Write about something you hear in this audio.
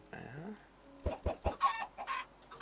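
A chicken squawks as it is struck.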